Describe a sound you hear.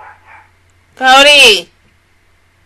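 A young woman lets out a loud, wavering vocal sound close to a microphone.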